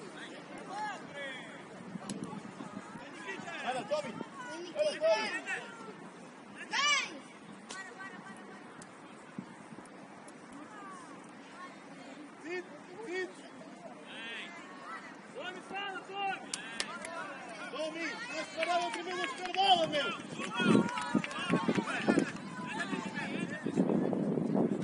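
Young players shout to each other outdoors on an open pitch.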